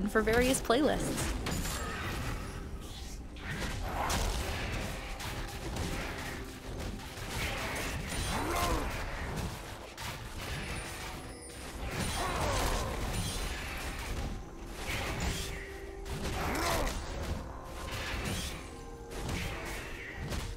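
Game combat effects whoosh and clash as characters fight.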